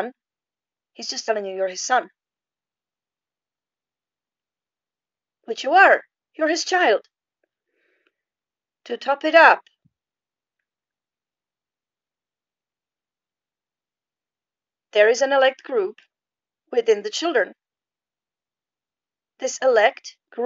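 A woman speaks calmly close to a microphone, in short phrases with pauses.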